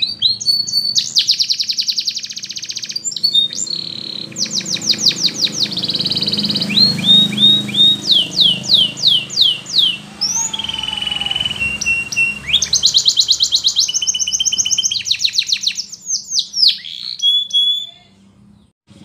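A canary sings close by in fast, bright trills and rising chirps.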